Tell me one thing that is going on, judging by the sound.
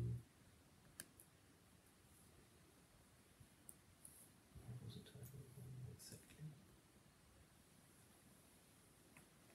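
Laptop keys click softly.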